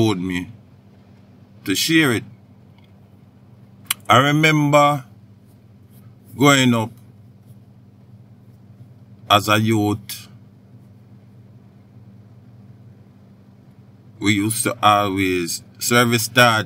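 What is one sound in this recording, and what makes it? A man speaks into a microphone in short bursts with pauses between them.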